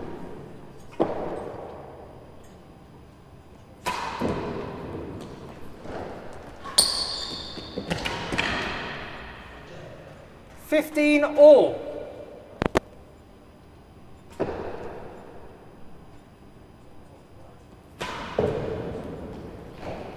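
A ball is struck hard with a racket and bounces around a large echoing hall.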